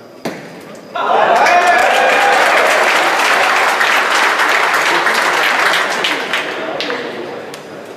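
A large crowd cheers and applauds.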